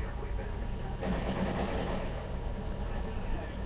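Rifle shots fire in a quick burst.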